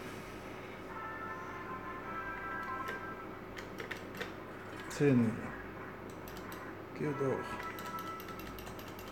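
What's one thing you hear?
A slot machine plays short electronic beeping tunes.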